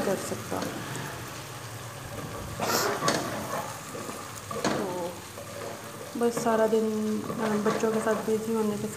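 A wooden spoon scrapes and stirs food in a metal pot.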